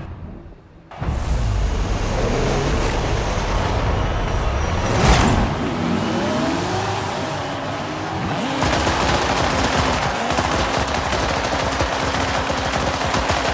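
A racing car engine idles and revs in short bursts.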